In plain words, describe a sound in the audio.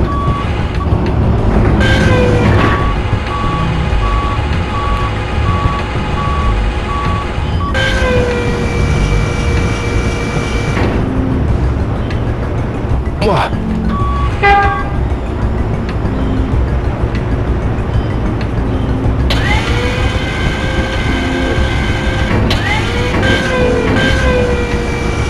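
A forklift engine rumbles steadily.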